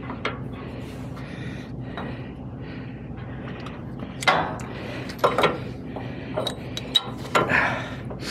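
Metal chain links clink and rattle.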